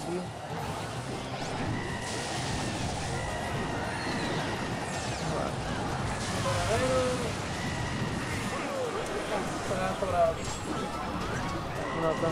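Battle sound effects and music play from a video game.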